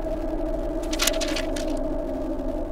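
A sheet of paper rustles as it is picked up.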